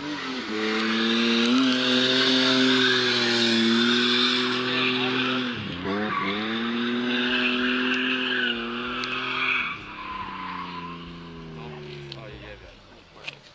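A car engine roars and revs hard nearby.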